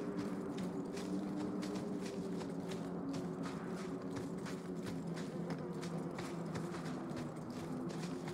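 Footsteps crunch quickly on sand and gravel.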